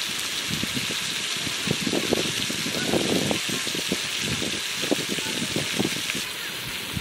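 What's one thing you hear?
A spoon stirs chopped vegetables in a metal pot.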